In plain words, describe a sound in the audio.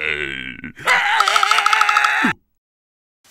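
A cartoon creature screams loudly in a high, wobbling voice.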